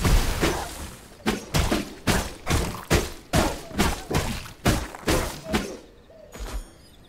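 Weapons strike and clash in rapid blows.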